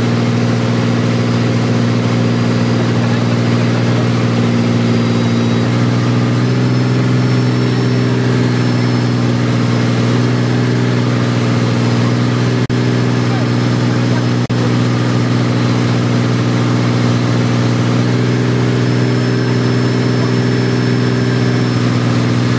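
A wakeboard skims and sprays across choppy water.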